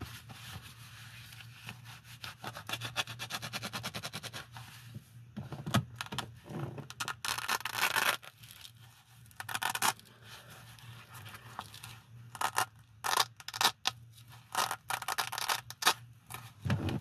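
Gloved hands rustle and handle a fabric pouch.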